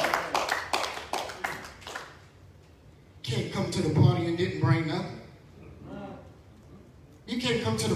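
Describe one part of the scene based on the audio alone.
A man preaches with animation through a microphone in an echoing hall.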